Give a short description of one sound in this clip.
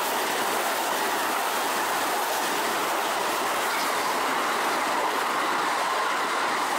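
A train rumbles past steadily, its wheels rushing and clattering on the rails.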